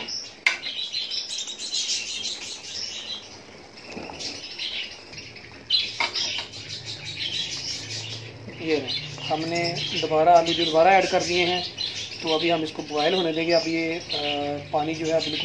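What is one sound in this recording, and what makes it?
Water bubbles and boils steadily in a pot.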